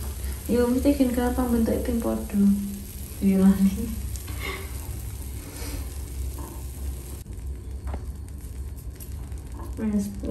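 A silicone spatula pushes through a thick batter in a frying pan.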